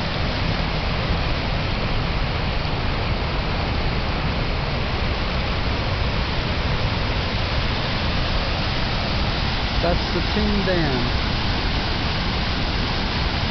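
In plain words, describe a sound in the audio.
A swollen river rushes and roars loudly over rocks.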